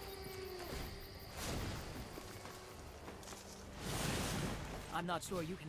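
Digital card game effects swoosh and chime as cards are played.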